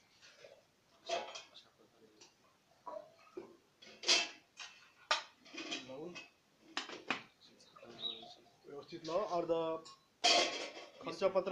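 Metal plates and lids clink and clatter against each other.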